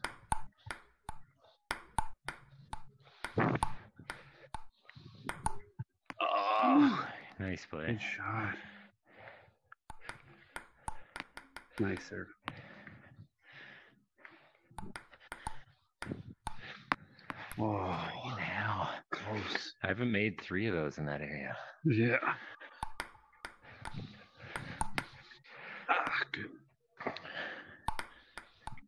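A table tennis ball clicks against paddles and bounces on a table.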